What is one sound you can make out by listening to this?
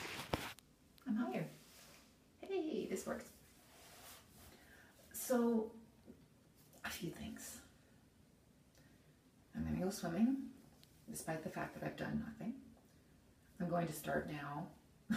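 A middle-aged woman speaks calmly and close by, pausing between phrases.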